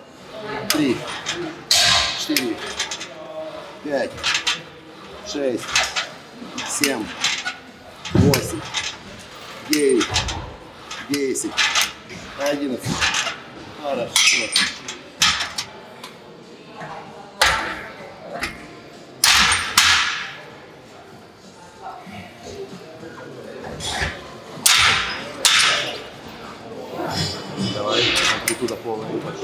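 A man grunts and breathes hard while straining.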